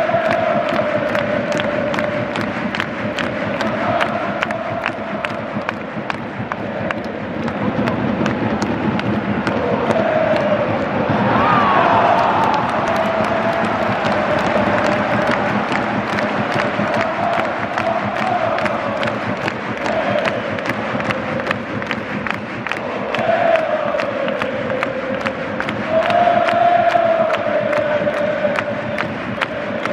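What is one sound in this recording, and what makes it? A huge stadium crowd chants and sings loudly in unison.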